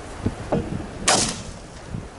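A shotgun fires a loud, sharp shot outdoors.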